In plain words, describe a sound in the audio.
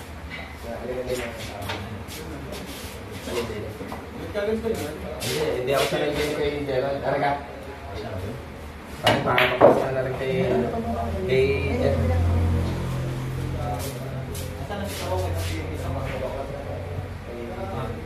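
Young men chat casually nearby.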